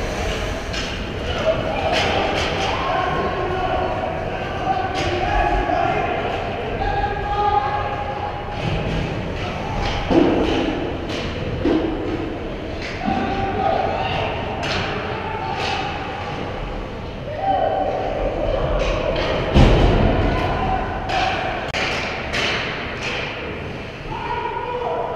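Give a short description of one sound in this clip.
Skate blades scrape and hiss on ice in a large echoing rink.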